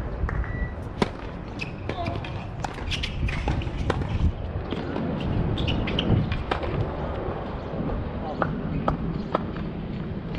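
A tennis ball is struck with a racket in a rally, with sharp pops.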